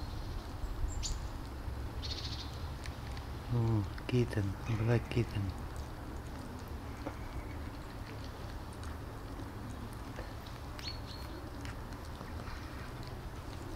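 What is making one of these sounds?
A cat chews and laps food from a plastic dish.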